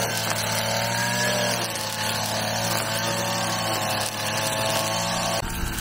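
A string trimmer engine whines steadily, close by.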